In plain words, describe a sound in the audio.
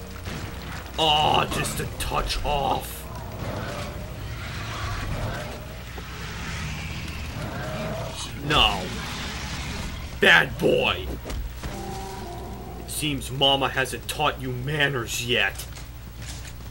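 A large creature growls and snarls close by.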